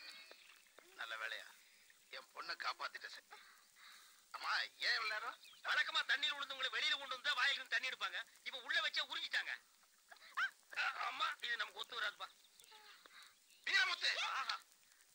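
A man speaks loudly and with animation, close by.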